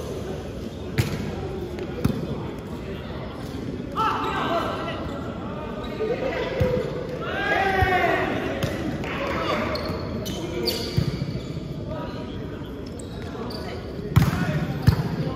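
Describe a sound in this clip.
A volleyball is struck with sharp slaps in a large echoing hall.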